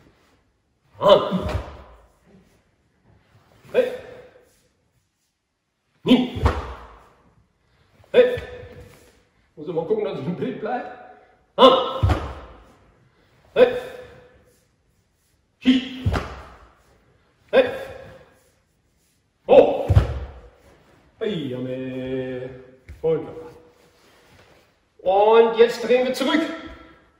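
An older man shouts sharply with each move, echoing in a large hall.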